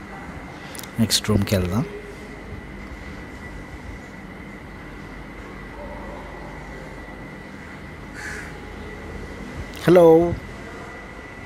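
Parrots squawk loudly.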